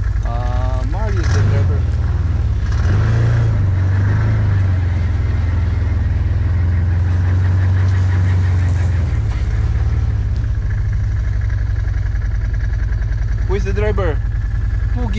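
An off-road vehicle's engine rumbles steadily up close.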